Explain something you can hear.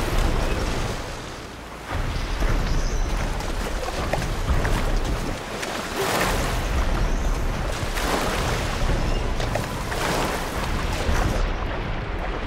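Waves splash and churn loudly around a swimmer.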